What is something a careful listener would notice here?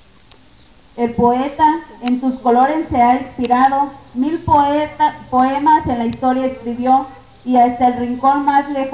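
A large group of children sings together loudly outdoors.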